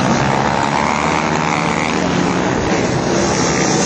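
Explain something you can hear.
A van's engine hums as it drives over dirt.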